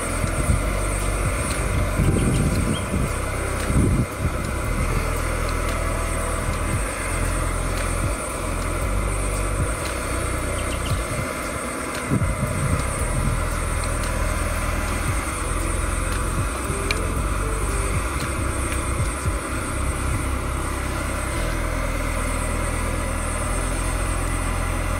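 Water bubbles and simmers steadily in a pot.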